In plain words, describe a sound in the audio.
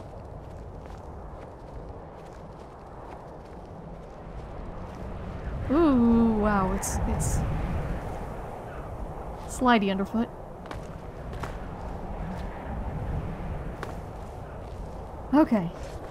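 Footsteps crunch on snow and rock.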